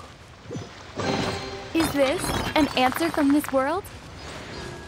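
A treasure chest opens with a bright magical chime.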